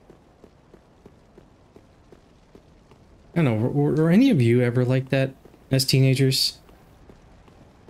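Footsteps crunch softly on stone.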